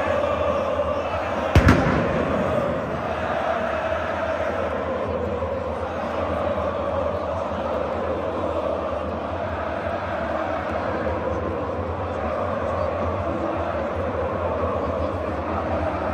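A large stadium crowd chants and sings loudly together, echoing through the vast stands.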